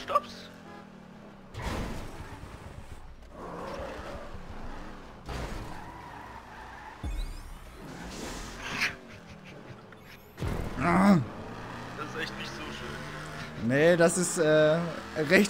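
A car engine revs as a car speeds along.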